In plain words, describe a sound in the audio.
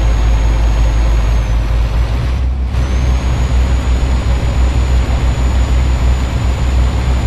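Tyres roll along the road.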